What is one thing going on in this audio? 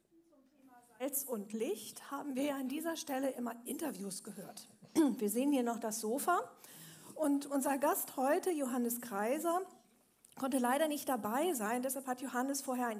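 A middle-aged woman speaks calmly through a microphone.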